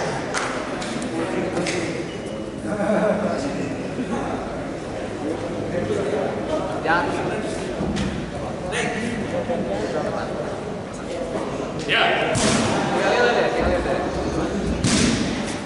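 Feet thud and slap on a mat.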